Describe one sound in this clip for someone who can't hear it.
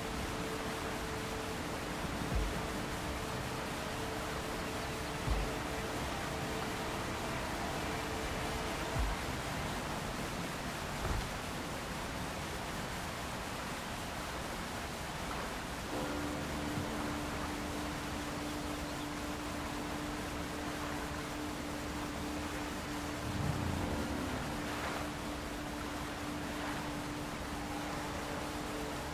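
Footsteps tread softly on sand and ground.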